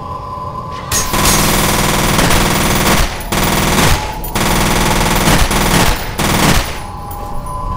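A submachine gun fires loud rapid bursts.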